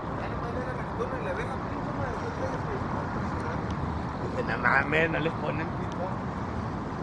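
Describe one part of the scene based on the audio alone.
Passers-by, men and women, chat at a distance.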